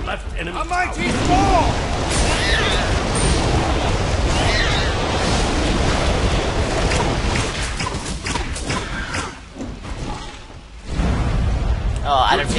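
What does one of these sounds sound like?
Fire spells roar and crackle in a fight.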